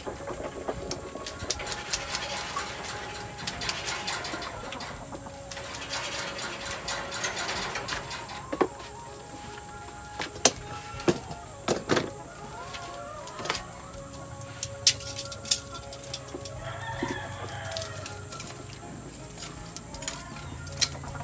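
A charcoal fire crackles and pops.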